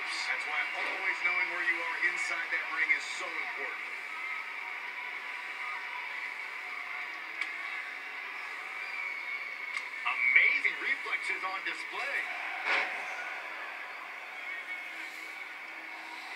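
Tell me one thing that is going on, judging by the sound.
A wrestling video game plays through a television speaker.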